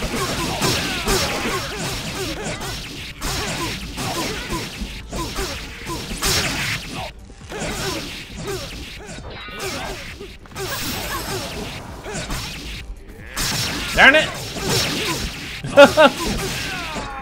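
Magic blasts and fiery bursts crackle.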